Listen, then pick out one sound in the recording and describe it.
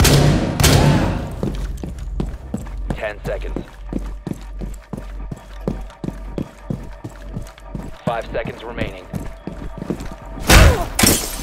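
Footsteps thud across hard floors.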